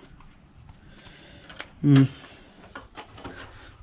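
A plastic cover knocks and rattles as it is handled.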